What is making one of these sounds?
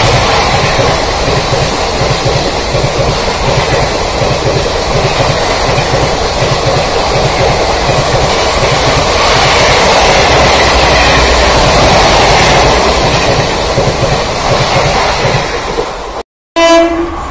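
A passing train rumbles loudly with rhythmic wheel clatter on the rails.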